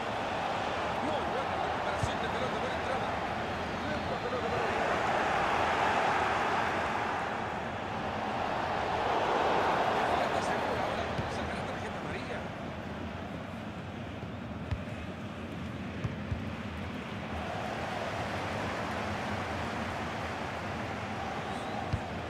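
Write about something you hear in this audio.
A stadium crowd roars and swells in waves.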